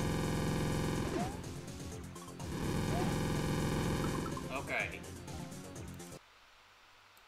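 Upbeat video game music plays loudly, then stops abruptly.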